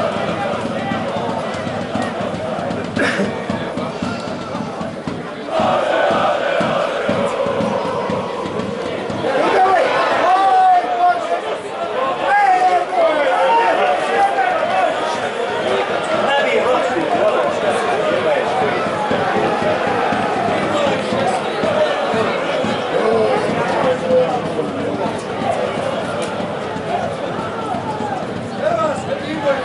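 A crowd in a large stadium cheers and chants steadily, growing louder as the attack builds.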